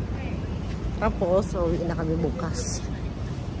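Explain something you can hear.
A woman speaks close to a microphone.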